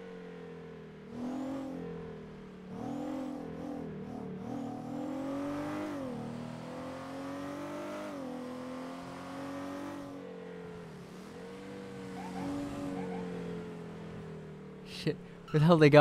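A car engine hums and revs up and down as the car drives.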